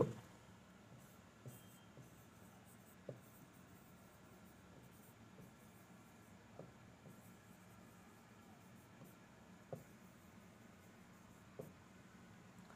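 A marker scratches and taps softly on a board.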